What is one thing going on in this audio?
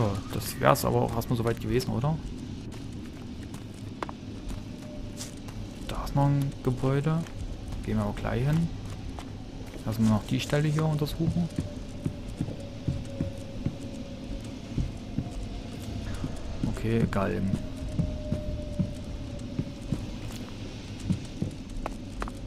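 Footsteps thud quickly on dirt and then on wooden planks.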